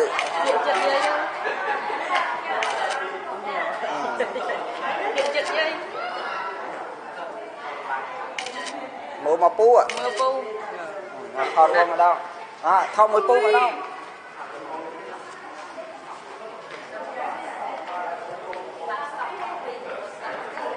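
A woman speaks with animation over a loudspeaker in an echoing hall.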